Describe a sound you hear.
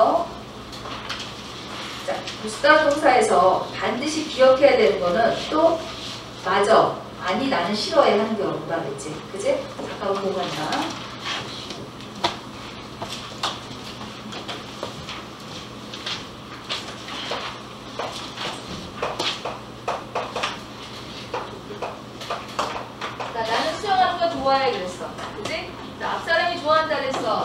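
A woman speaks calmly through a microphone in a room with a slight echo.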